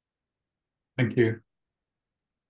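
An older man says a few words over an online call.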